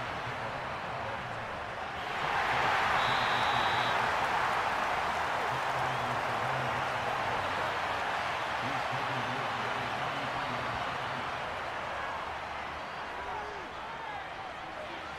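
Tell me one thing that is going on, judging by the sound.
A stadium crowd roars loudly, swelling and then slowly fading.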